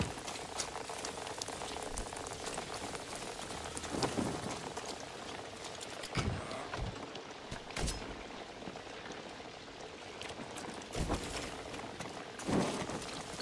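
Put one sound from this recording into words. Footsteps thud softly on the ground.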